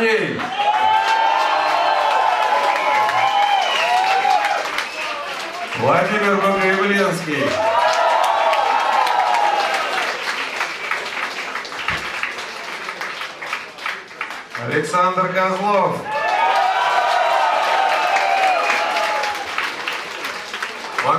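A man sings loudly into a microphone over a live rock band.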